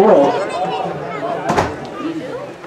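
Football players collide with a thud of pads.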